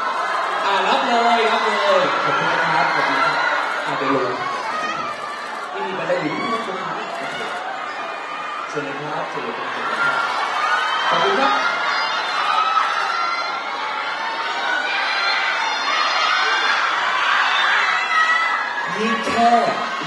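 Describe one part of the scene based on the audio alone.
A man speaks with animation through a microphone over loudspeakers.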